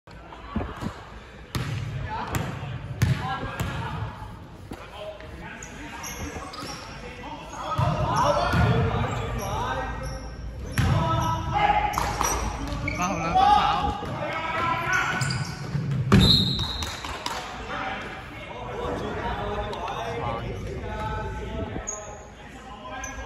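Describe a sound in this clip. A basketball bounces on a wooden court in an echoing gym.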